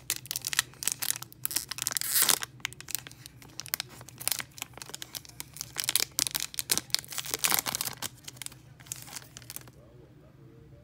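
A foil wrapper crinkles and crackles between fingers.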